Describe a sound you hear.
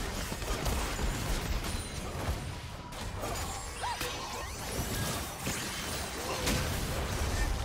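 Spell effects crackle and burst in a fast, busy fight.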